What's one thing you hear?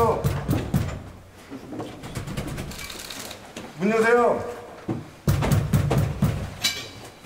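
Several men talk at once close by, some calling out loudly.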